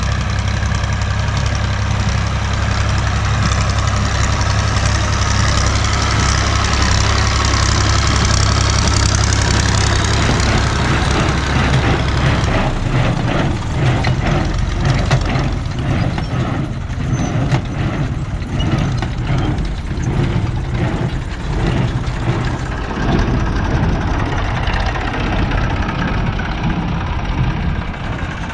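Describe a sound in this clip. A tractor engine chugs steadily nearby.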